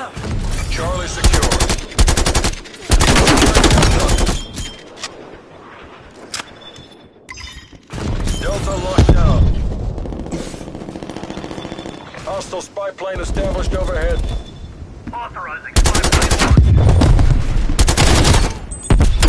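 An automatic rifle fires loud rapid bursts.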